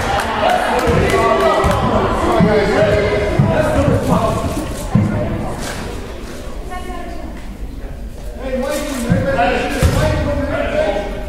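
Young players and spectators shout and chatter in a large echoing gym.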